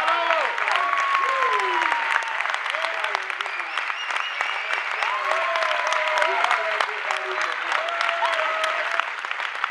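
A second young man shouts along into a microphone.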